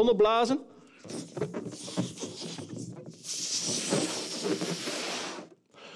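A man blows hard into a balloon, inflating it.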